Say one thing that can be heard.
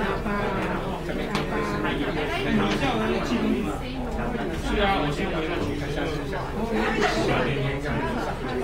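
Many men and women chat at once in a room that echoes a little.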